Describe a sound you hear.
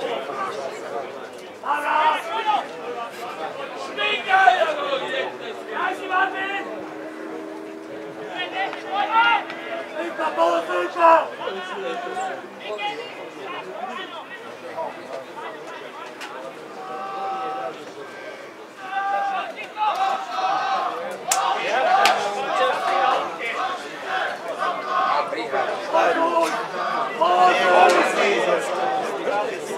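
Football players shout to each other across an open field, some distance off.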